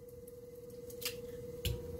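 An egg cracks open and drips into a glass.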